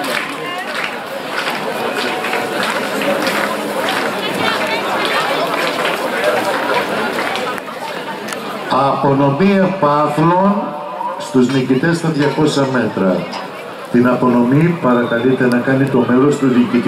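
A crowd of spectators chatters nearby, outdoors.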